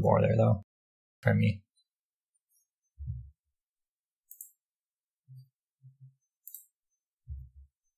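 A man speaks casually and close to a microphone, in short bursts.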